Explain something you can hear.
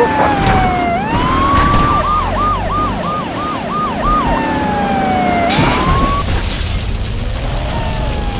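A car engine roars as the car drives.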